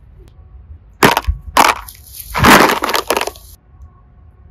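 Plastic boxes knock and clatter together in a basket.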